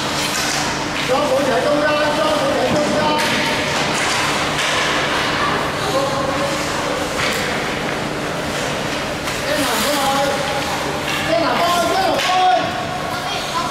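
Young children shout across an echoing rink.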